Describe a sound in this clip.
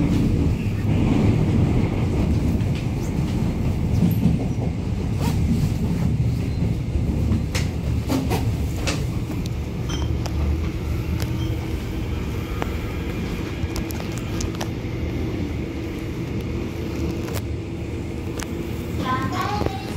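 A subway train rumbles steadily along the tracks.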